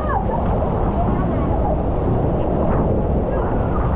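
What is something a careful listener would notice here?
A person slides down a water slide with rushing water.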